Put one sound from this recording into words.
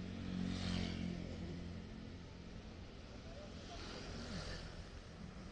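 Motor scooters drive past on a busy street.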